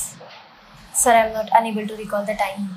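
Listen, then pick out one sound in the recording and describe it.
A young woman speaks calmly into a microphone nearby.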